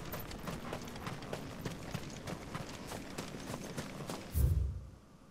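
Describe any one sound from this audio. Footsteps crunch steadily through grass.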